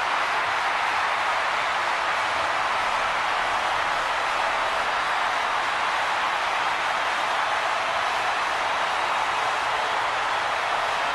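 A crowd roars and cheers steadily in a large arena.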